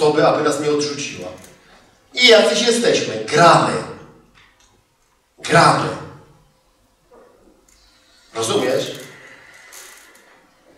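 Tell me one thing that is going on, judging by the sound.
A man speaks with animation through a microphone in a hall with a slight echo.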